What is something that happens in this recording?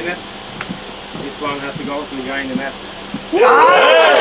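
A man speaks to a group nearby.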